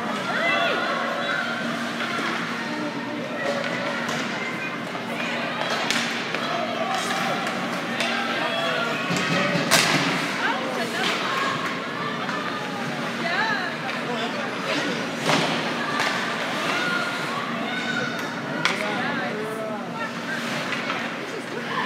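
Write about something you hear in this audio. A crowd of spectators talks and calls out in a large echoing arena.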